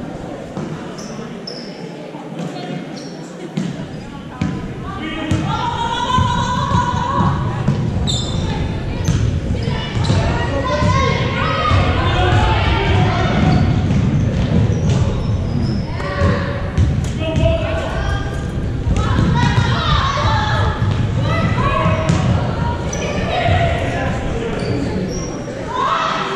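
A basketball thuds as it bounces on a hard floor.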